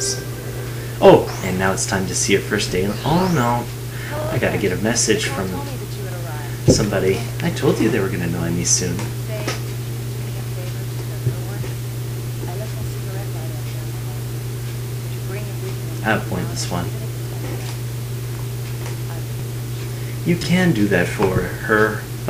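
A young woman speaks with animation through a small loudspeaker.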